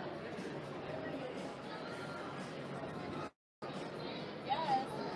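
A crowd murmurs and chatters in a large busy hall.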